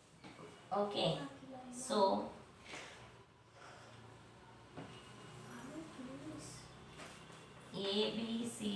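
A woman speaks calmly and clearly, explaining.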